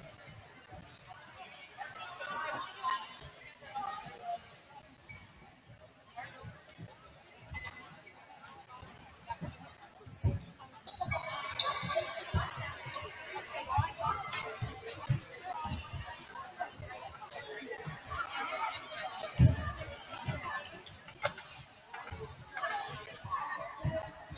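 Young women chatter and call out in a large echoing gym.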